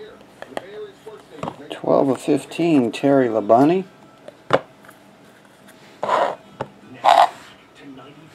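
Small cardboard boxes knock and tap on a table.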